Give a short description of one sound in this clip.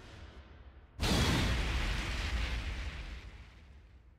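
A loud blast bursts out and rumbles on, fading.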